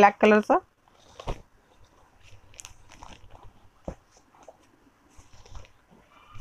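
Fabric rustles softly as it is unfolded and handled.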